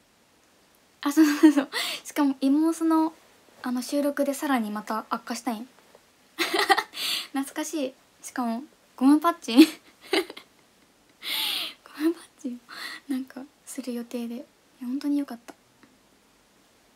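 A young woman talks cheerfully and close up.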